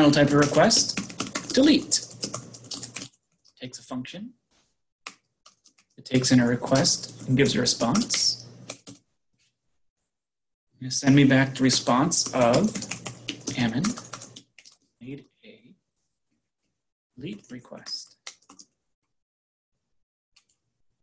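Computer keys click as someone types.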